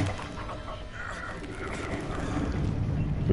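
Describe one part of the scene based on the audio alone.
A rumbling blast roars and swells.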